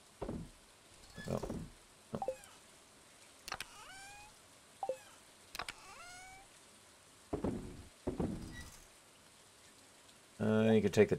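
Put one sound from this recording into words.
Short chiming game menu sounds play as items are moved.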